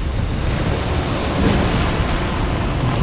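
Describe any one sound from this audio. A roaring gust of wind sweeps past with a loud whoosh.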